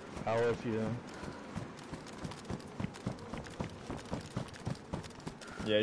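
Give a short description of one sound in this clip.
Footsteps run quickly over concrete.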